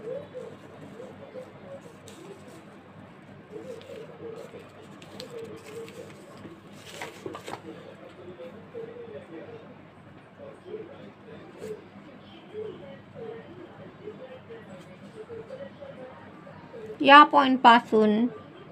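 Paper and cloth rustle softly as hands fold them.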